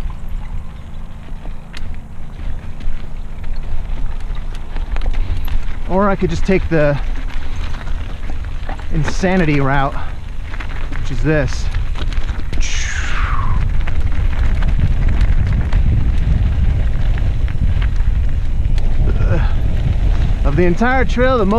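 A mountain bike rattles over loose stones.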